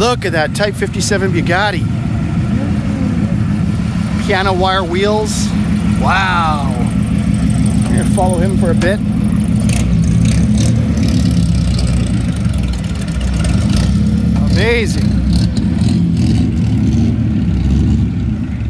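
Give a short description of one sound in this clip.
A car engine rumbles low and steadily as a vintage car drives slowly past.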